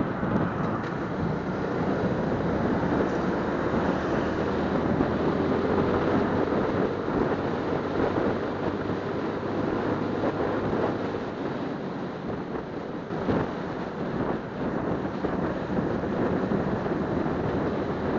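A motorcycle engine hums steadily close by as it rides along a road.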